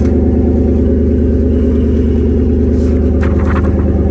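Fabric rustles as clothes are moved about.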